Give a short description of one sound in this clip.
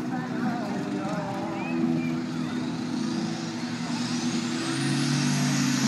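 A tractor engine roars in the distance and revs higher.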